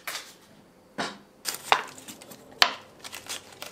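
A cleaver cuts through cabbage onto a wooden board.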